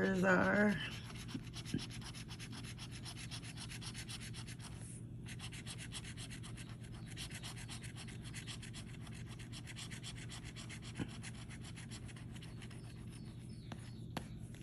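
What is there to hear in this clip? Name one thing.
A metal scraper scratches rapidly across a card.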